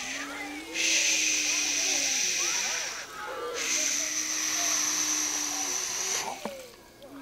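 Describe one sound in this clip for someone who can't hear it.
Water pours and splashes into a tub of water.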